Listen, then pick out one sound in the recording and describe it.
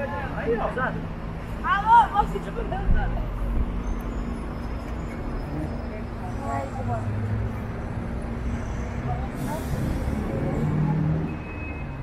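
A city bus drives past with its engine rumbling.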